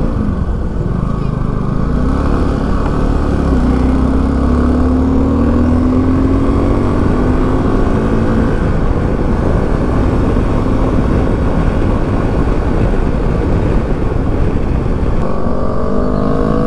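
A motorcycle engine hums steadily, its pitch rising and falling with the throttle.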